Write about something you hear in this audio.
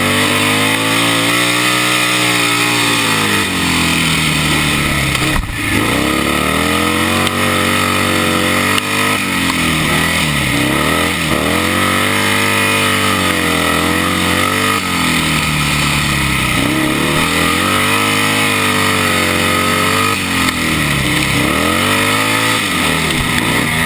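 A motorcycle engine roars loudly up close, its pitch rising and falling as the rider revs through the laps.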